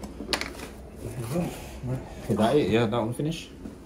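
Two men talk casually up close.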